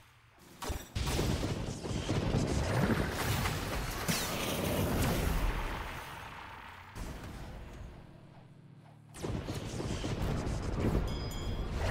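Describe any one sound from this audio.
Magic blasts whoosh and crash loudly.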